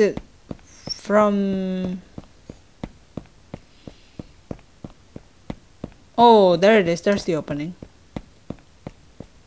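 Quick footsteps patter steadily on a hard floor.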